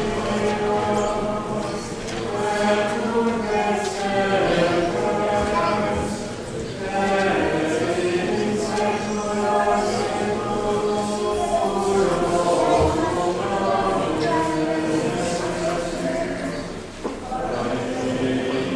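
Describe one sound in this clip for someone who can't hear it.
A man chants slowly, echoing in a large hall.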